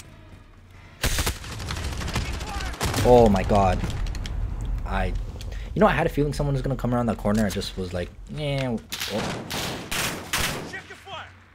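Gunshots fire in sharp, rapid bursts.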